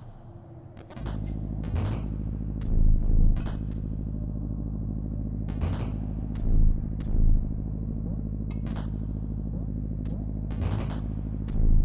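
Electronic game music hums with a low, steady drone.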